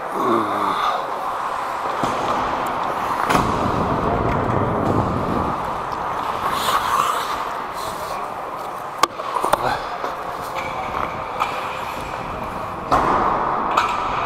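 Ice skates scrape and hiss across the ice close by.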